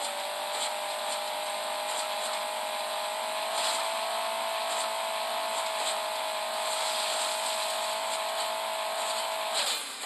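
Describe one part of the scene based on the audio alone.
Coins chime briefly as they are collected.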